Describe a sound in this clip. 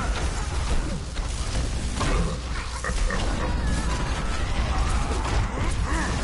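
Rapid energy gunfire zaps and crackles.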